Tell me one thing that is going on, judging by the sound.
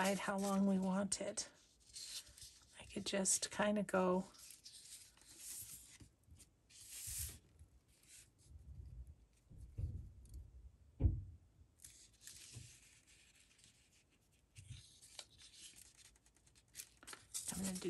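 Paper rustles and crinkles as hands smooth and press it down.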